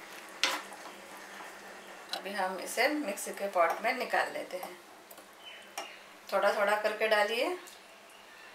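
Tomatoes sizzle softly in a hot pan.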